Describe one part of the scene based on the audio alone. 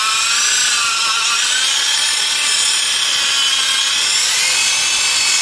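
An angle grinder whines steadily at high speed while sanding a tile surface.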